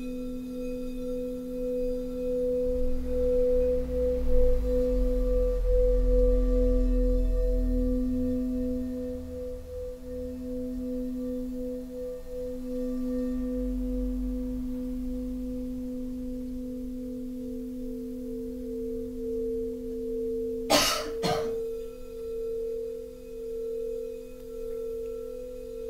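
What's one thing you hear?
Crystal singing bowls ring with steady, humming tones that swell and pulse.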